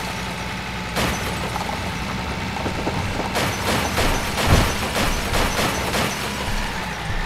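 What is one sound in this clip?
A truck crashes into a car with loud bangs and thuds.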